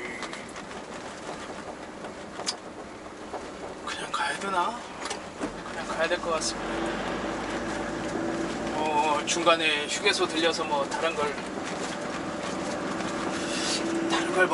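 A diesel truck's engine drones from inside the cab while driving.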